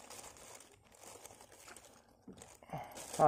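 Raindrops patter softly on calm water.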